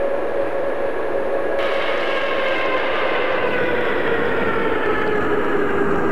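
A train approaches with a loud, droning hum that grows steadily louder.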